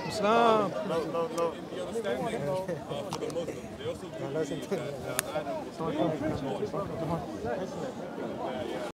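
Several people talk over one another nearby.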